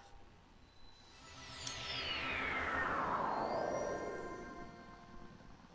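A shimmering magical tone sweeps downward in pitch.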